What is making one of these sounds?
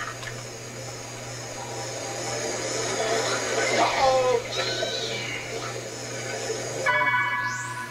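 Loud game sound effects rumble and screech from a television.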